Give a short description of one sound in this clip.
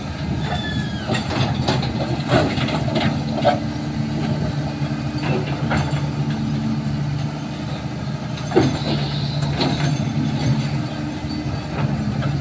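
A steel excavator bucket scrapes and clanks against the ground.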